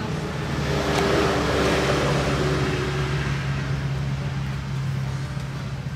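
Paper pages rustle as they are turned by hand.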